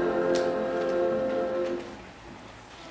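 A choir of young voices sings a held chord that ends.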